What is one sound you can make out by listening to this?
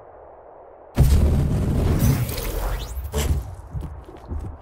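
A crackling electric zap blasts loudly from a ray gun.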